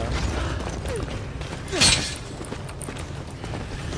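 A metal gate creaks and clanks shut.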